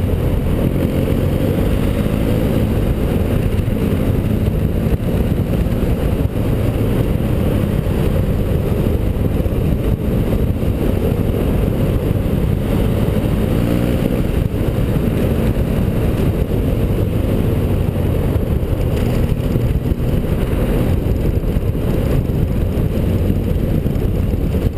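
Wind buffets the rider's microphone.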